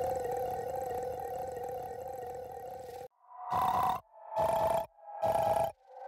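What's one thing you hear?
A bouncy electronic tune plays, then comes in short bursts.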